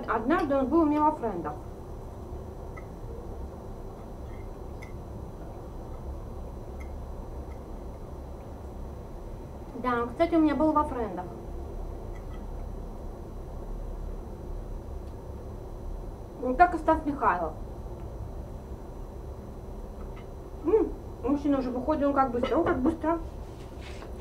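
A woman speaks calmly and close by, in short bursts.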